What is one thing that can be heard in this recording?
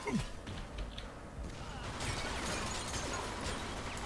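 A loud explosion bursts.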